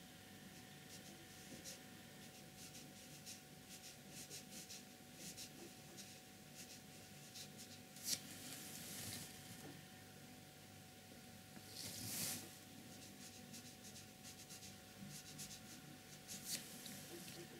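A paintbrush taps and scratches lightly on paper.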